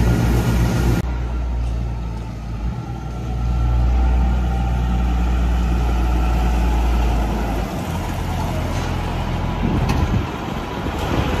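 A tractor engine rumbles as it drives up close.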